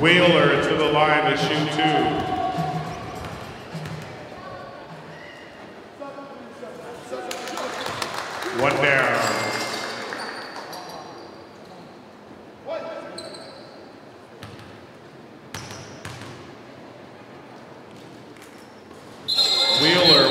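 A crowd cheers and chatters in an echoing gym.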